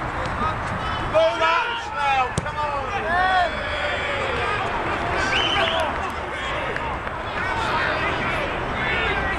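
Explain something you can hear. Men shout loudly across an open field.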